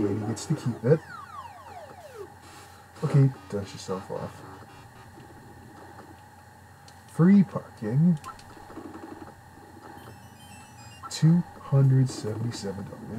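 Electronic video game sound effects beep and chirp with quick falling tones.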